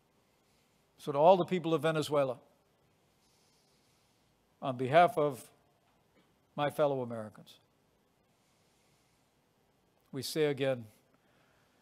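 A middle-aged man speaks slowly and deliberately into a microphone, with long pauses.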